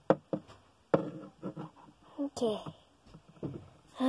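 A small plastic toy is set down on a hard surface with light knocks.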